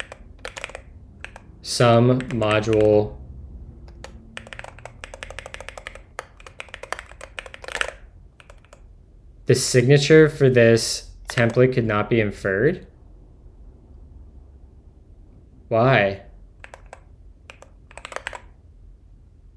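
Keyboard keys clatter in quick bursts of typing.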